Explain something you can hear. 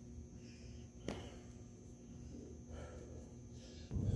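Footsteps thud softly on a carpeted floor.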